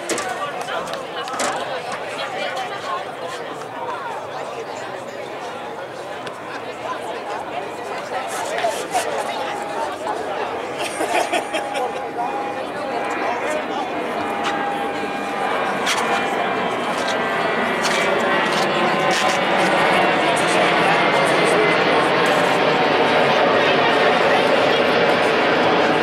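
A crowd of spectators chatters and cheers outdoors, growing louder.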